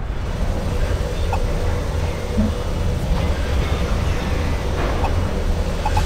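A menu blips with short electronic tones.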